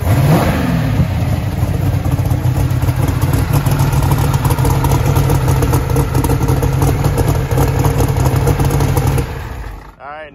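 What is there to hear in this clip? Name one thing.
A big turbocharged engine idles loudly with a deep, lumpy rumble close by.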